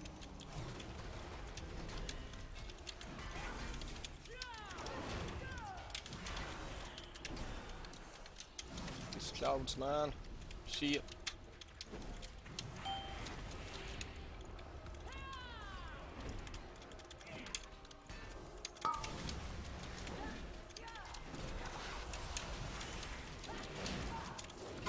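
Magic spells whoosh and crackle amid battle sounds.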